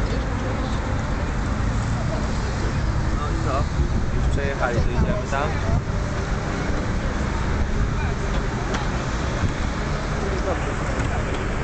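Cars and motorbikes drive past on the road.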